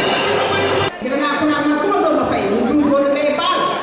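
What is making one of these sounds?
A woman speaks through a microphone and loudspeakers.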